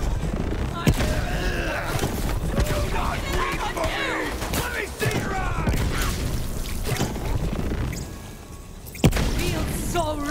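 Rapid gunfire bursts out in loud cracking volleys.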